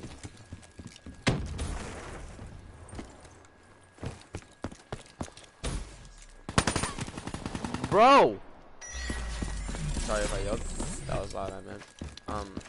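Gunfire cracks in short, quick bursts.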